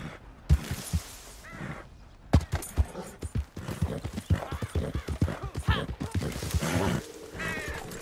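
A horse's hooves thud rhythmically on soft ground at a gallop.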